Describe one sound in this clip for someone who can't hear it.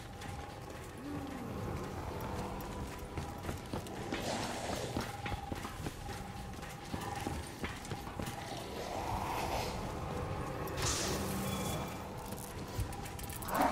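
Zombies growl and snarl nearby.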